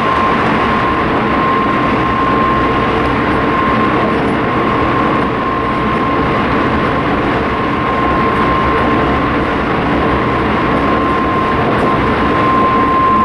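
A vehicle rolls steadily along a road with a constant rumble and hum.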